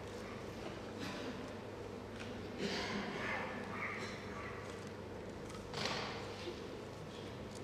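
A young man speaks on a stage in a large hall.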